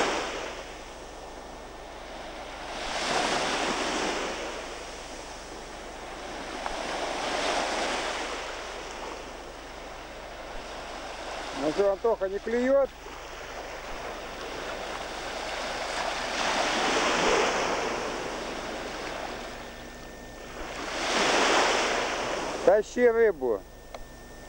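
Small waves wash onto a shore in slow, repeating surges.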